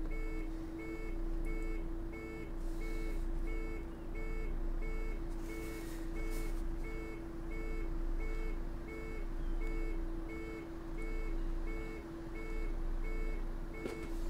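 A pedestrian crossing signal beeps in a quick, even rhythm.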